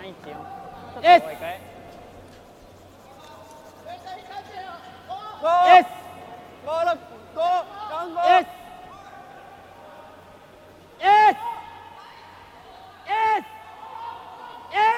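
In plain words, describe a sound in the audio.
Men shout loudly and sharply.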